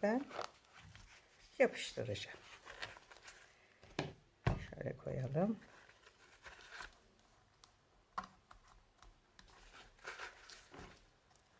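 Paper and fabric rustle as they are handled and folded.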